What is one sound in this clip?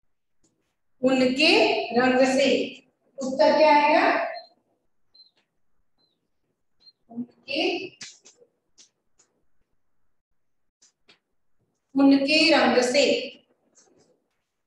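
A young woman speaks, explaining a lesson, close by.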